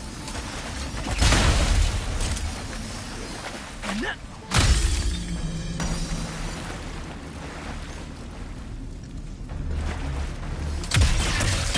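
Water splashes as a small figure wades through it.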